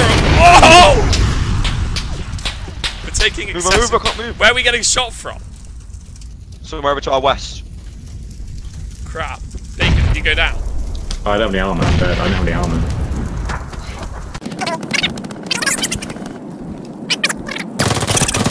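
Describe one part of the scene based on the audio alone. Flames roar and crackle from a burning vehicle.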